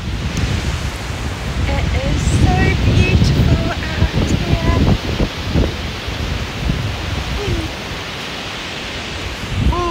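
Wind rushes loudly across a microphone outdoors.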